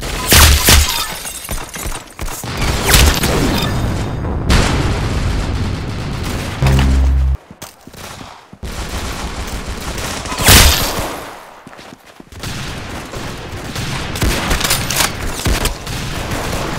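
Gunshots crack in quick bursts, with short breaks between.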